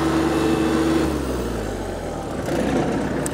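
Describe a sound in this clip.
A riding mower's engine shuts off and winds down to a stop.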